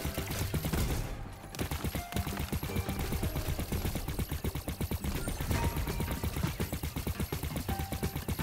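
Rapid electronic shots fire in quick bursts.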